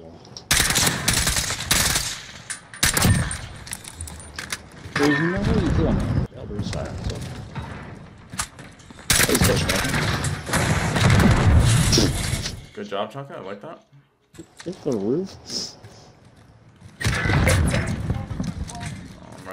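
Automatic gunfire rattles in loud rapid bursts.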